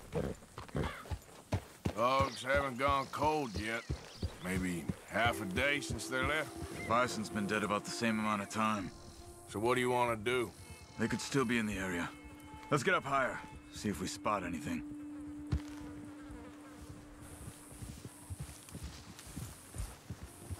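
Horse hooves thud softly on grass.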